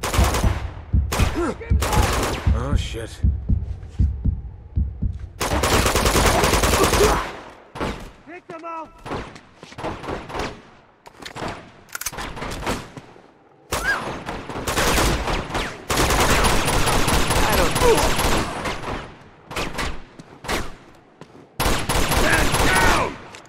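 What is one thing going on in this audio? Gunshots fire in quick bursts, loud and close.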